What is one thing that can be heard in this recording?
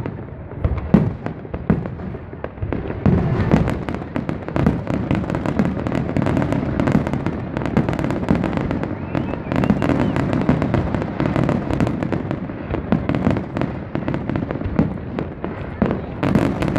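A crowd murmurs and cheers outdoors.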